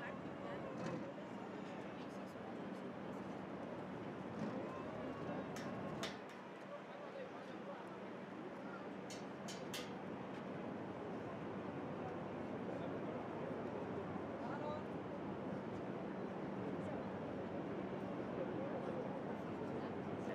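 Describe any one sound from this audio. Distant city traffic hums steadily far below.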